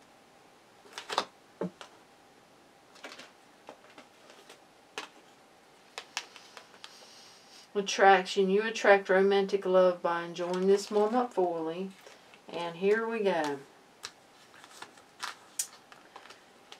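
Playing cards slap softly onto a table.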